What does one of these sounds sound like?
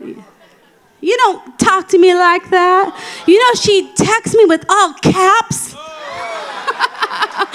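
A woman speaks with animation into a microphone, amplified through loudspeakers in a large hall.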